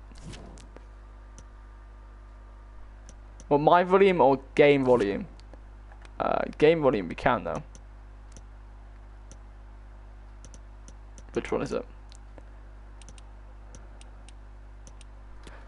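Soft menu ticks sound as options are selected.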